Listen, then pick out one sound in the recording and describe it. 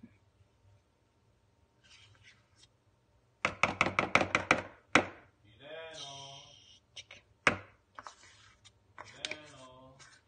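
A metal spoon scrapes and taps against a bowl.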